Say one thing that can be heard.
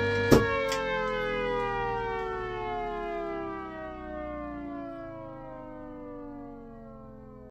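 A siren winds down, its wail slowly falling in pitch and fading.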